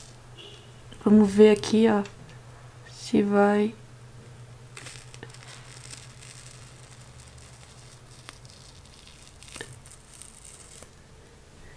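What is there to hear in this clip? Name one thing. A peel-off mask crackles softly as it is pulled from skin.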